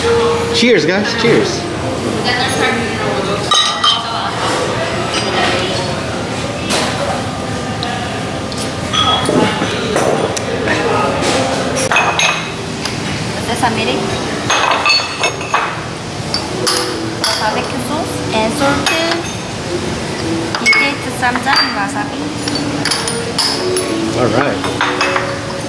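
Men chatter nearby in a busy room.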